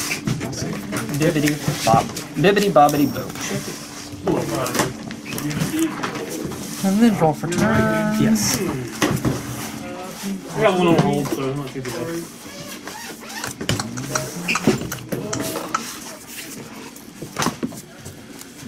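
Playing cards are shuffled and tapped on a table.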